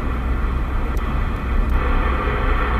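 A radio channel knob clicks.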